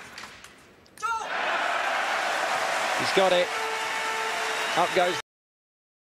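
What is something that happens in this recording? A large crowd cheers loudly and whistles.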